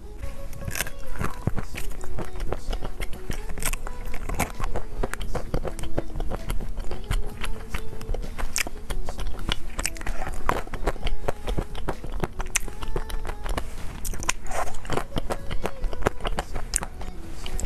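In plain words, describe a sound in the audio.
A young woman bites and crunches crisp chocolate snacks close to a microphone.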